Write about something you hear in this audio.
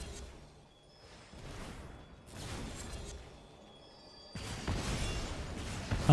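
A magical spell effect whooshes and shimmers.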